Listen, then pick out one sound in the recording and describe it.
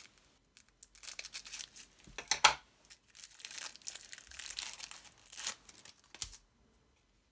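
A plastic wrapper crinkles as hands peel it open.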